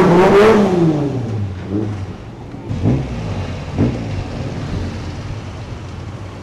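A sports car engine idles with a low rumble.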